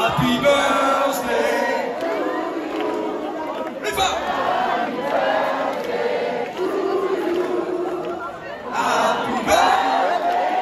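A band plays loudly.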